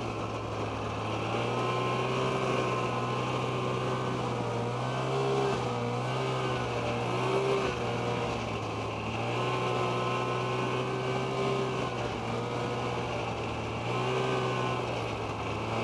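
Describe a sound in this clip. Wind rushes past a microphone outdoors.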